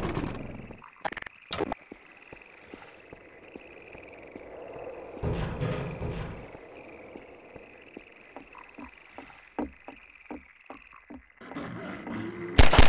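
Footsteps thud on hard ground and wooden planks.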